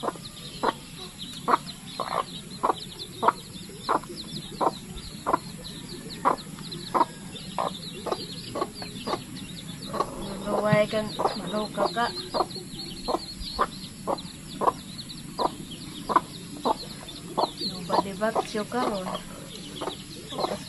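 A hen clucks steadily up close.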